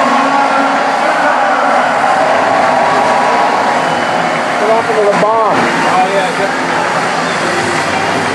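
A large crowd cheers and whistles loudly in a big open stadium.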